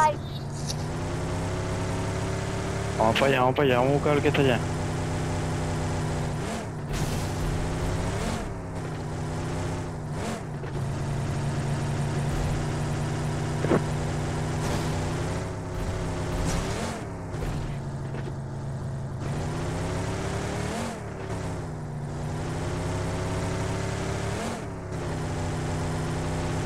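A car engine hums steadily and revs up and down as the car drives.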